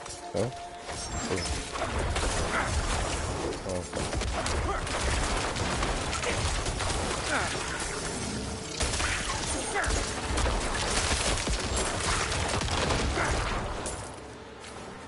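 Weapons clash and strike enemies in a busy fight.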